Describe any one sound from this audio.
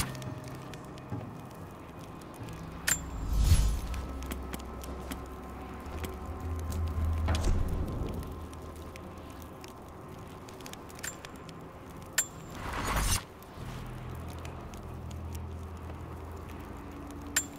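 A campfire crackles and burns.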